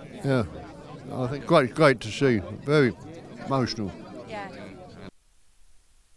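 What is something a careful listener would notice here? An elderly man speaks softly and with emotion, close by.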